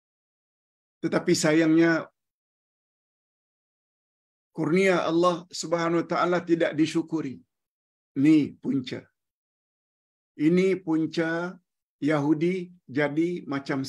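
An elderly man speaks with animation through an online call, in short bursts with pauses.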